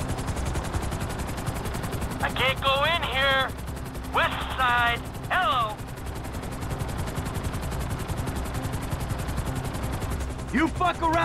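Helicopter rotor blades chop steadily.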